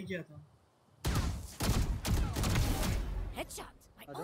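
Rapid gunshots crack in a quick burst.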